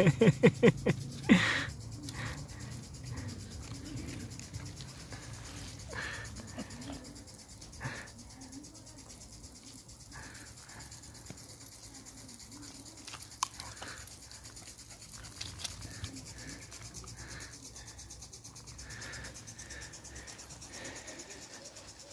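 Puppies' paws patter and rustle through dry grass.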